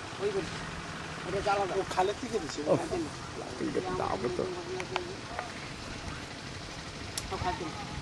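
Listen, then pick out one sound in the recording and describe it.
A man speaks calmly nearby outdoors.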